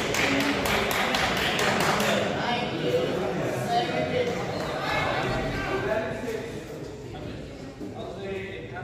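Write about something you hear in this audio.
Spectators chatter in the background.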